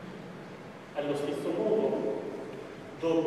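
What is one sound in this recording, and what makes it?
A man speaks through a microphone in an echoing hall.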